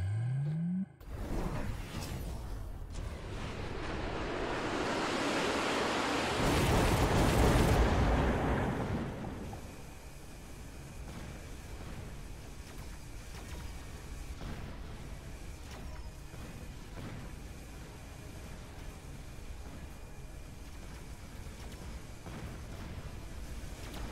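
Guns fire and shells explode in a distant battle.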